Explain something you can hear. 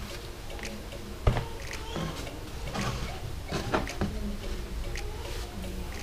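A cloth rustles as it is laid down on a table.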